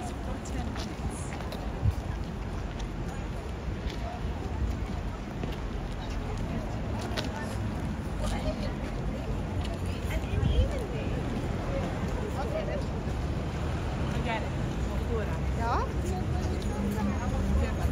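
Traffic rumbles nearby.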